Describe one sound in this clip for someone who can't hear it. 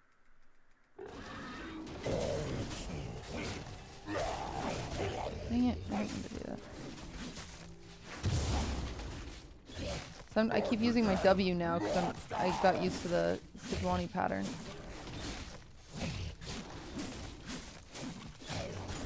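Video game combat effects clash and crackle.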